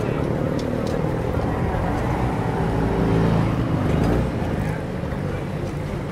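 A motorised rickshaw engine rumbles past close by.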